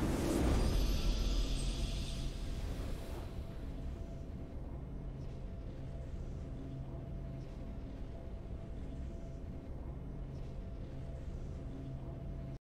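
Triumphant game music plays softly and steadily.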